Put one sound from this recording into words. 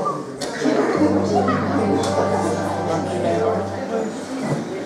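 A double bass plays a held low note.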